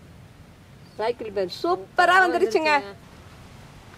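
Women laugh and talk cheerfully close by.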